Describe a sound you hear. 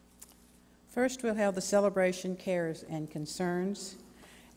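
A woman speaks into a microphone over loudspeakers in a large echoing hall.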